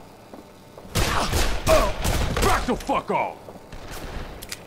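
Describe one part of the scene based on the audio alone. A pistol fires several loud shots.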